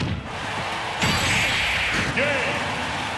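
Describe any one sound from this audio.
A heavy blow lands with a loud crackling burst.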